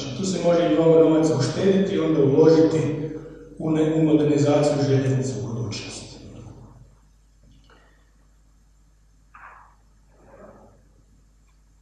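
A middle-aged man speaks calmly into a microphone, heard through loudspeakers in a large room.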